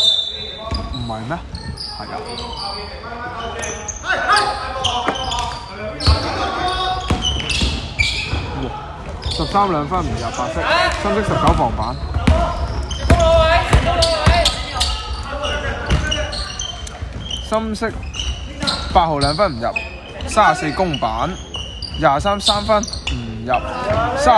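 Sneakers squeak sharply on the hardwood floor.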